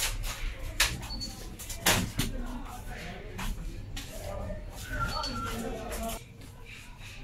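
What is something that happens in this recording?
Tools knock and clatter on a workbench.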